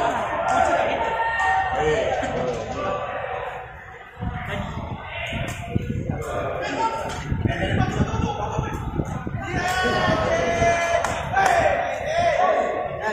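Young men call out and shout to each other in a large echoing hall.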